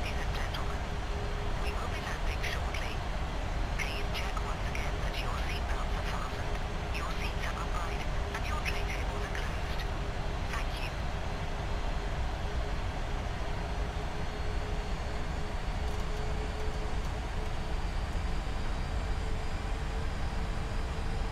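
Jet engines roar steadily around a cockpit as an airliner flies.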